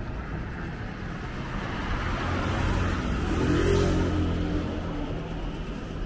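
A motorbike passes close by with a rising and fading engine roar.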